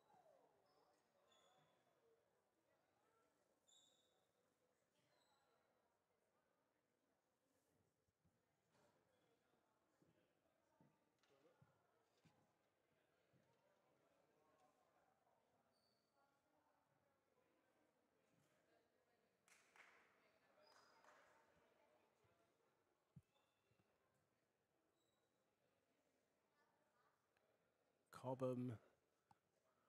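A man speaks calmly to a group close by in an echoing hall.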